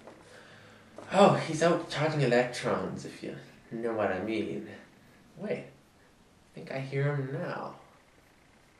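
A young man reads out from a paper, close by.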